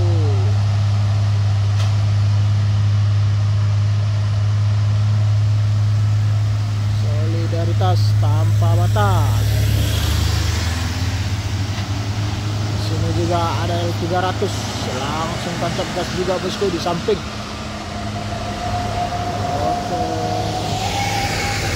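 A heavy truck engine drones steadily as it labours uphill.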